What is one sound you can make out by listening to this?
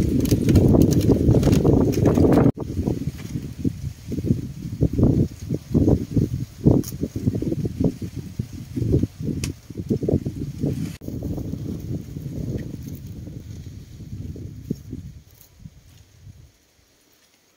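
Dry corn kernels rattle and patter into a woven basket as they are rubbed off the cob.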